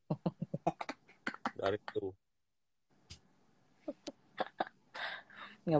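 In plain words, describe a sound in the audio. A young woman laughs close to a phone microphone.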